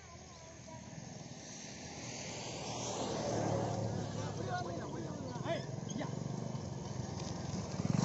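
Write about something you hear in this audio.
A motorcycle engine approaches and passes close by.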